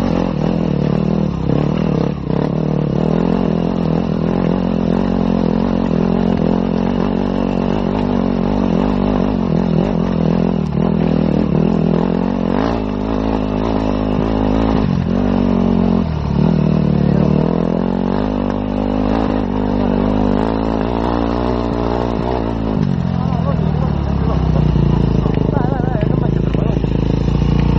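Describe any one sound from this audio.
Tyres crunch and rattle over loose stones.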